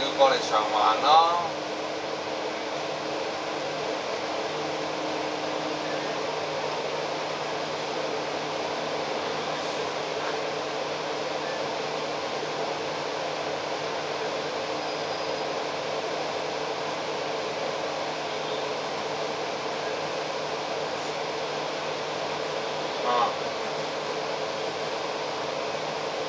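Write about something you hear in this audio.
Traffic rumbles steadily on a busy city street outdoors.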